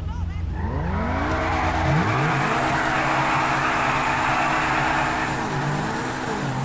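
Tyres screech and hiss as they spin on the road.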